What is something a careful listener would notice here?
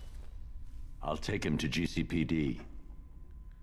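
A man speaks in a low, calm, gravelly voice.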